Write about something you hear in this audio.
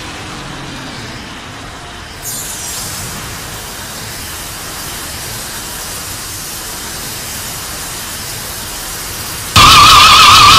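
An energy beam hums and crackles.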